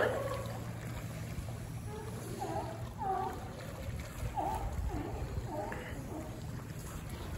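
Sea lions bark and grunt close by.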